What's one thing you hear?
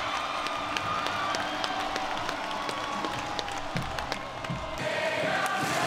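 Young men cheer and shout nearby.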